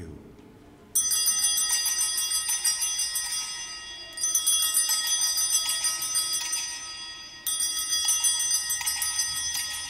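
Altar bells ring out in bright, shimmering bursts.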